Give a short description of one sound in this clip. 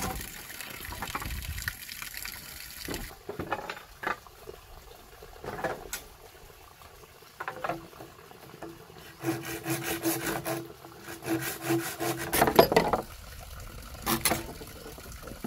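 A knife knocks and chops at bamboo.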